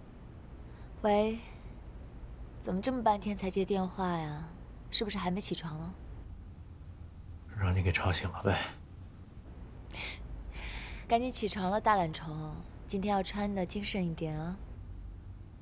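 A young woman talks cheerfully on a phone, close by.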